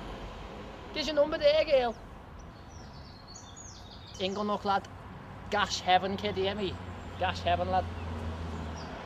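A young man talks with animation close by, outdoors.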